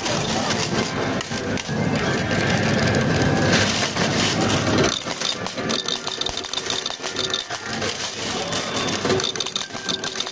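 Coins clink and slide as a pusher tray moves back and forth.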